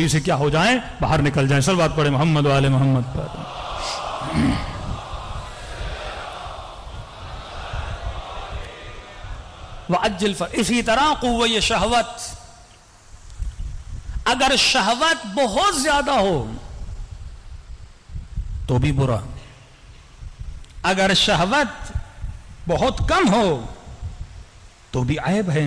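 A man speaks passionately into a microphone in loud, drawn-out bursts, with echo.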